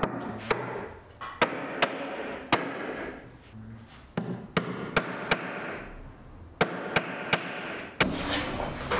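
A hammer drives nails into wood.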